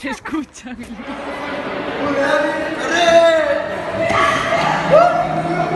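Young men shout and laugh loudly close by.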